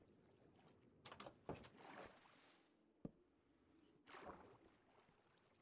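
Water bubbles up and gurgles in short bursts.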